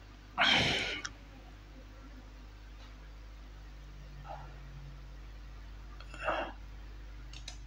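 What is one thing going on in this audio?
A man speaks a few short words close by, with long pauses.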